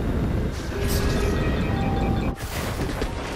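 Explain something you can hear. A jetpack roars with a low rushing blast.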